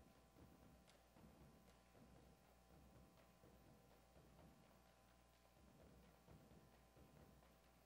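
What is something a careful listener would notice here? Drummers beat large drums in a steady rhythm, echoing in a large hall.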